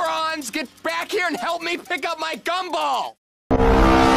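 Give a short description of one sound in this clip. An elderly man shouts in panic.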